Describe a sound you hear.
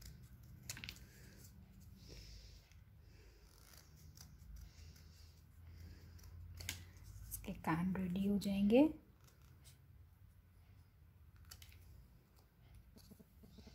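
Scissors snip through thin card with short, crisp cuts.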